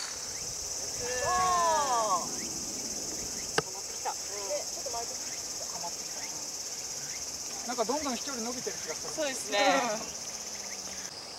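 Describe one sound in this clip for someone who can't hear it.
Young women call out with excitement close by.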